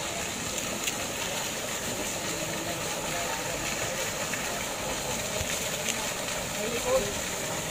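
Water sloshes as a woman moves in a pool.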